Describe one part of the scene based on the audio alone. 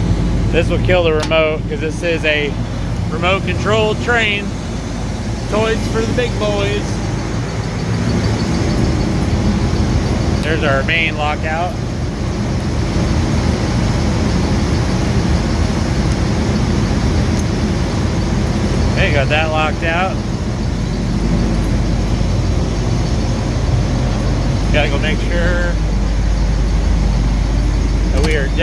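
A large diesel engine idles with a steady low rumble.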